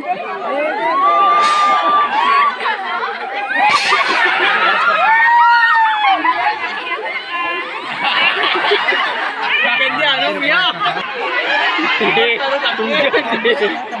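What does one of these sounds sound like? Children and women cheer and laugh loudly.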